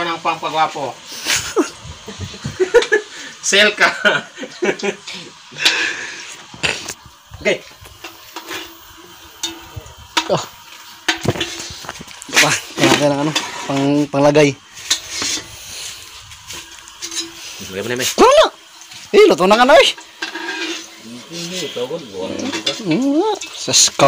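A metal spatula scrapes and clinks against a pan.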